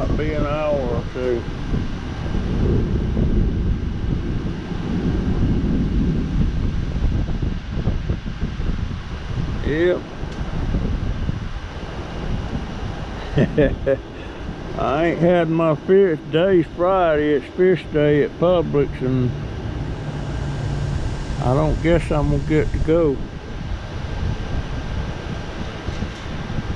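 Tree leaves rustle in the wind.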